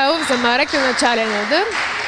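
A volleyball is struck hard with a sharp slap.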